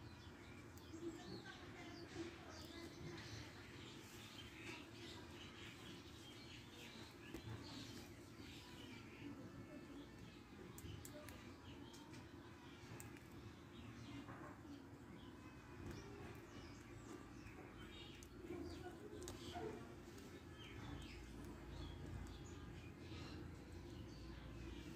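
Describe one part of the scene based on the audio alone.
A hen clucks softly close by.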